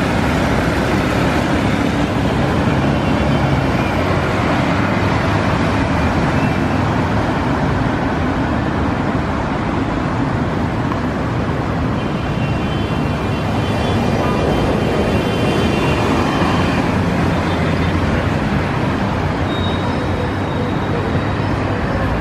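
Traffic on a busy road roars.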